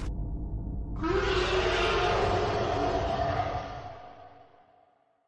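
A monster roars loudly and growls.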